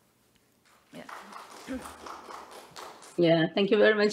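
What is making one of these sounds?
A woman speaks faintly through a microphone in a room.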